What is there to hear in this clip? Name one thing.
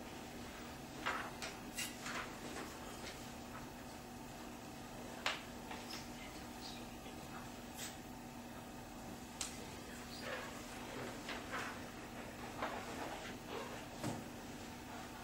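Papers rustle on a table.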